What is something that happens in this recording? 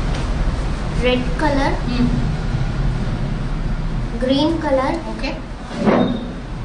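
A young girl speaks briefly and calmly nearby.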